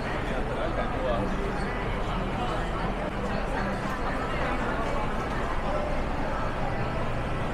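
A crowd murmurs with voices echoing in a large hall.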